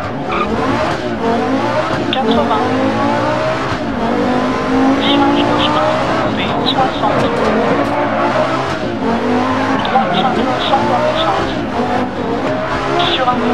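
A rally car engine revs hard, rising and falling as it shifts gears.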